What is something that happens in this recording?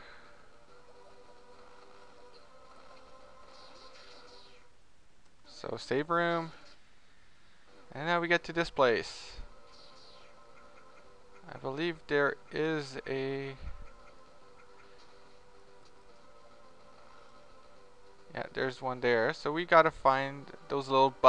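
Electronic game music plays softly with a steady, looping tune.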